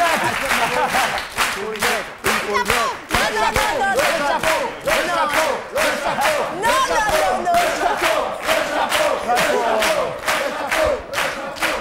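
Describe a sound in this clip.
A studio audience claps along in a steady rhythm.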